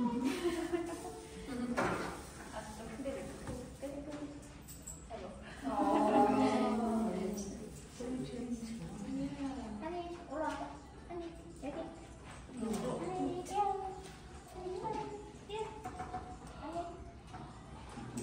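Several people chat and laugh in the background.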